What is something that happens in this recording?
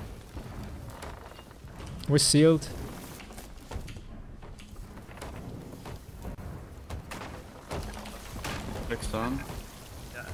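Water sprays hard through a leak in a wooden hull.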